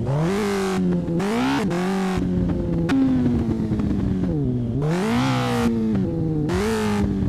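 A motorcycle engine revs up and down as it speeds along.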